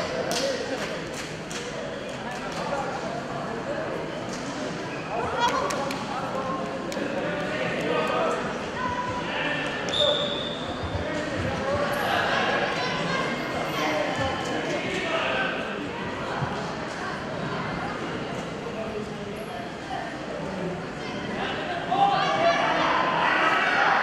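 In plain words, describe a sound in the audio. A crowd of spectators chatters throughout in a large echoing hall.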